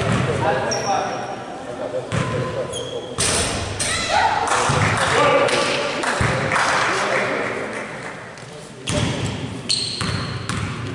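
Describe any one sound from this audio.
Young men call out in a large echoing gym.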